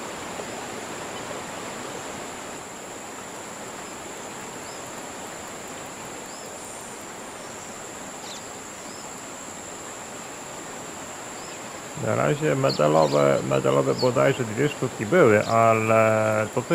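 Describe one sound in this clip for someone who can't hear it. A fishing reel whirs as its line is wound in.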